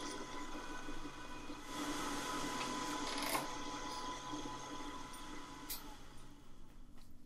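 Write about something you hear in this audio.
A drill press whirs steadily, then winds down.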